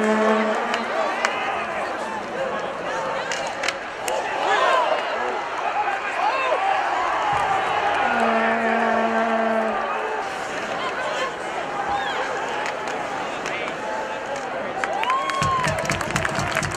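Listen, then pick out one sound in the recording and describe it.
Hockey sticks clack against each other and the puck.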